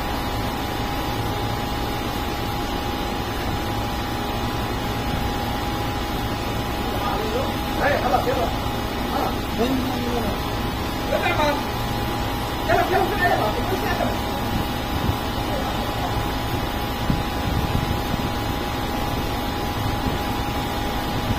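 A gas torch flame roars steadily and close by.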